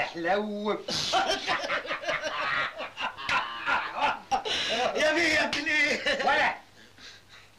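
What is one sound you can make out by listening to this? An older man shouts excitedly.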